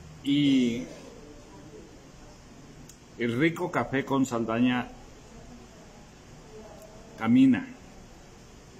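An elderly man speaks calmly and close up, in short bursts with pauses.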